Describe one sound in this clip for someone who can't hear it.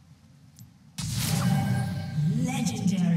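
Video game spell effects whoosh and ring out.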